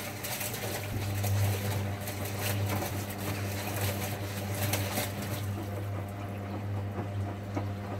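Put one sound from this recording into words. Laundry tumbles and thuds inside a washing machine drum.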